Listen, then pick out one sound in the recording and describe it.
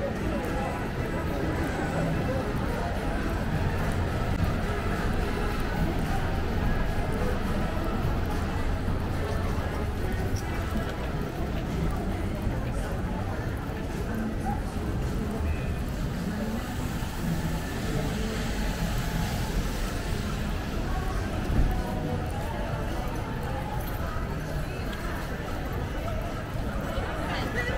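Footsteps patter on a wet pavement.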